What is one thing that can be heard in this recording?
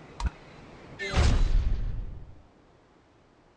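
A bright whooshing jingle swells and fades away.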